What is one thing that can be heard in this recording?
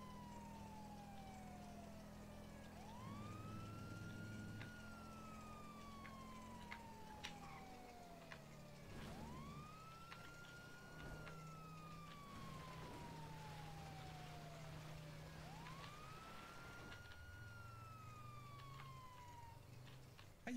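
A siren wails in a repeating rising and falling cycle.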